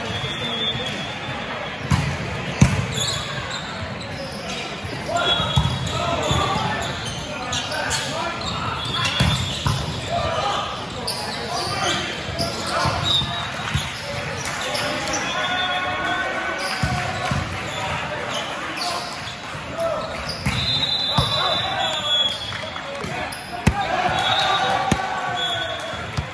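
Young men call out to one another across the court.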